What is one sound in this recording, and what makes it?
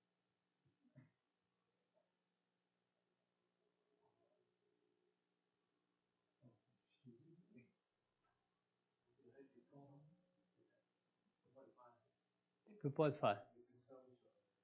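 A middle-aged man speaks calmly, with long pauses.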